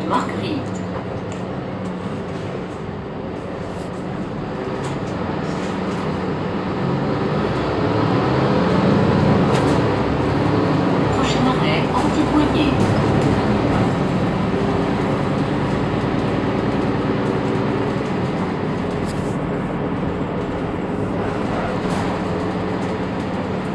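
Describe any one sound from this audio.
A bus engine idles nearby with a low steady rumble.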